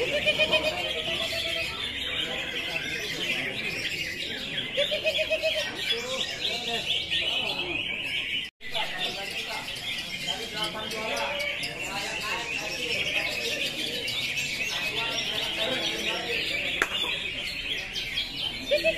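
Many caged birds chirp and twitter busily in a large echoing hall.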